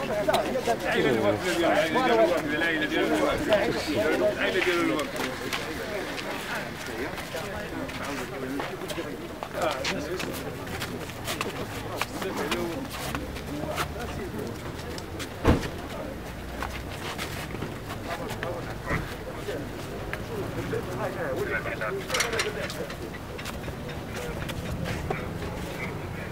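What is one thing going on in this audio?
Men's voices murmur nearby outdoors.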